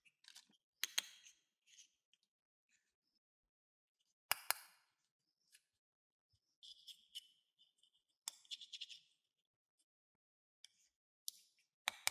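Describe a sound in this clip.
Plastic toy pieces click and clack as they are pulled apart and pressed together.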